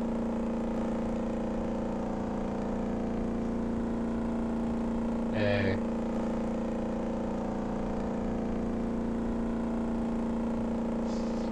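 A motorboat engine hums steadily.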